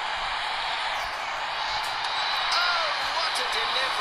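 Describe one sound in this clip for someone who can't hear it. A bat strikes a ball with a crack.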